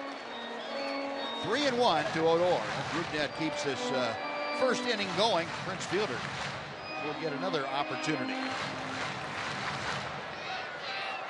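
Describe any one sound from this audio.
A crowd cheers and claps.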